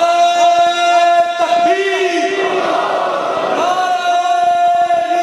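A man chants in a long, wavering voice through a microphone and loudspeakers.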